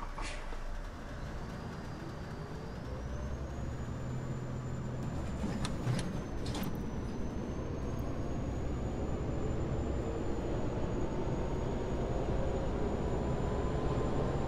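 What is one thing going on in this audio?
A diesel city bus engine pulls away and speeds up.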